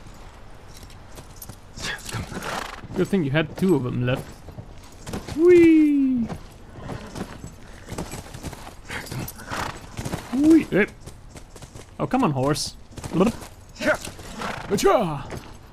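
A horse's hooves clop on soft ground.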